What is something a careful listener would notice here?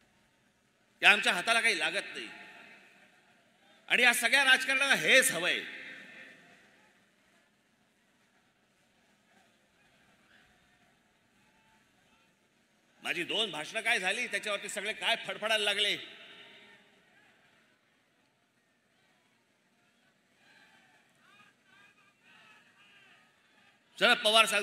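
A man speaks forcefully into a microphone over loudspeakers, his voice echoing outdoors.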